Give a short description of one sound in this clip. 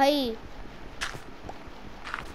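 A shovel crunches into dirt.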